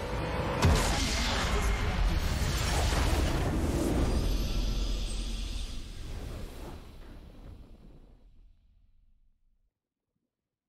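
A deep booming explosion rumbles and slowly fades away.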